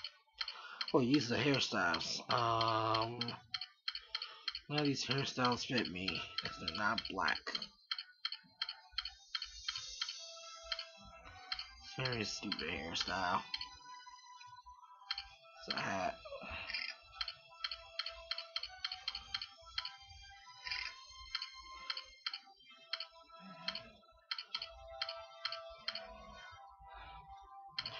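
Short menu clicks tick repeatedly as selections change.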